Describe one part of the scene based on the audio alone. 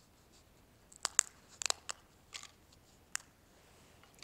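A metal cup clinks softly a few times.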